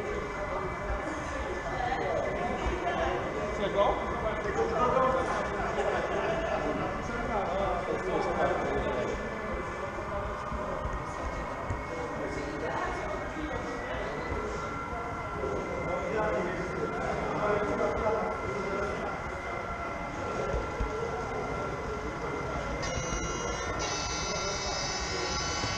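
People chatter in a large room around the track.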